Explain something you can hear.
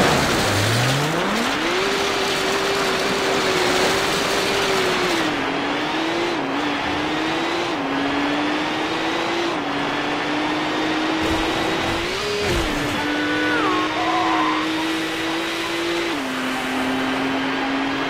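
A racing car engine revs up high and roars, shifting through gears.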